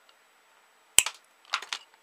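Pliers snip through a wire with a sharp snap.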